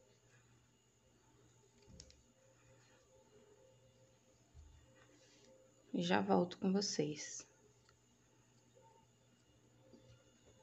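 A crochet hook softly rustles through yarn.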